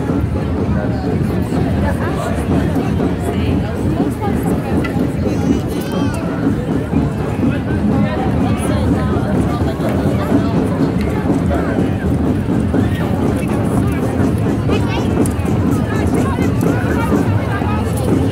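A large outdoor crowd chatters and murmurs loudly all around.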